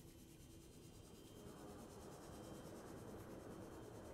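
A small underwater motor whirs steadily.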